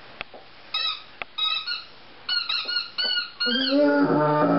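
A dog whines and yelps in short, high bursts.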